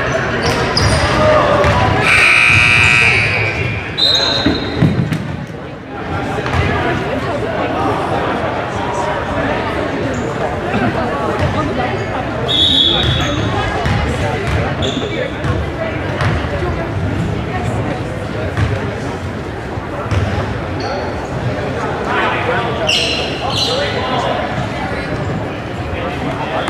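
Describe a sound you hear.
A crowd of young spectators chatters and cheers.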